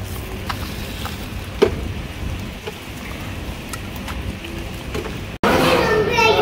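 Eggs sizzle in a hot pan.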